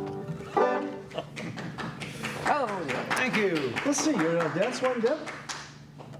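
A banjo is plucked.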